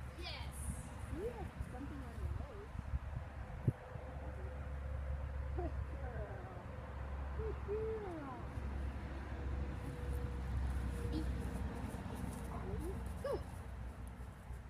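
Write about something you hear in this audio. A woman talks calmly to a dog nearby.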